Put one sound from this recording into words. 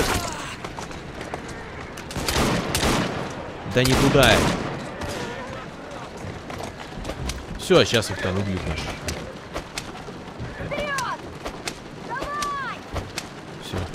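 A horse-drawn carriage rattles quickly over cobblestones.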